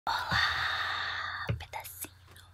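A young woman lets out a long, breathy vocal sound close to a microphone.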